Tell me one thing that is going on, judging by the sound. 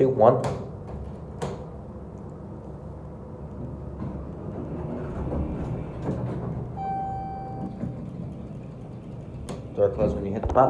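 Elevator buttons click as they are pressed.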